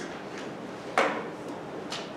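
A sharp knock sounds near a microphone.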